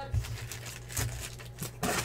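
Foil card packs crinkle as they are handled.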